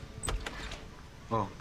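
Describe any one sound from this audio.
A door knocks and creaks open.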